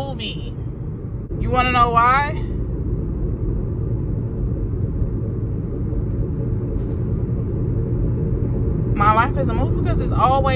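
A young woman speaks close up, with expressive, drawn-out exclamations.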